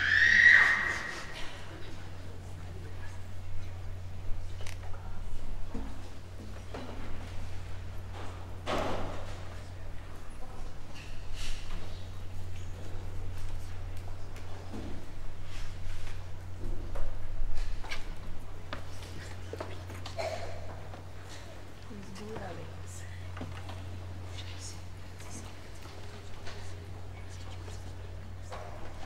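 A congregation murmurs quietly in a large echoing hall.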